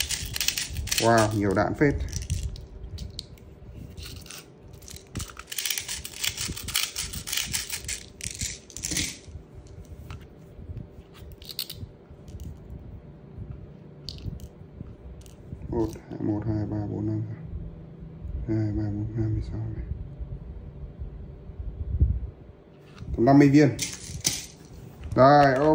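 Small plastic parts click and rattle as they are handled close by.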